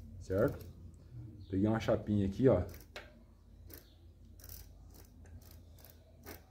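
Metal parts of a bicycle hub click and rattle under a man's fingers.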